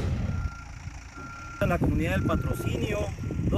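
A backhoe engine rumbles in the distance.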